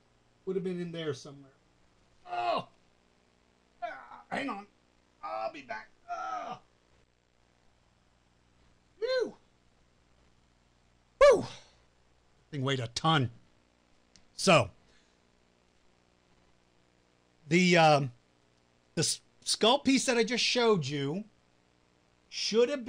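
A middle-aged man talks with animation, close to a microphone.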